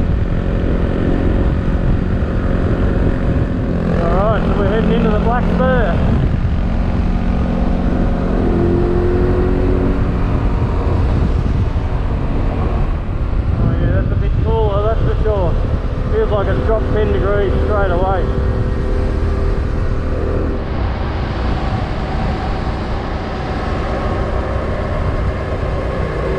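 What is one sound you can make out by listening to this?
Wind roars hard against a moving rider.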